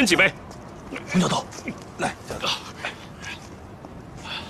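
A middle-aged man speaks pleadingly up close.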